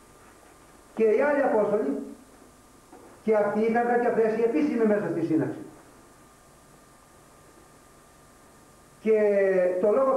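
An elderly man speaks calmly and slowly, with long pauses.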